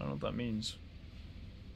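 A young man speaks briefly and calmly, close to a microphone.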